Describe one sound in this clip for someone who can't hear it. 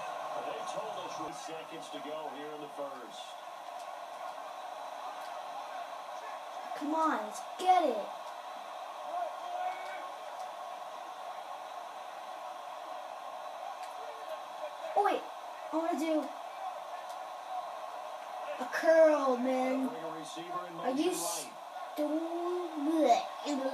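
A man commentates on a football game through a television speaker.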